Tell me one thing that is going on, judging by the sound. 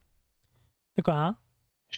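A short game chime sounds.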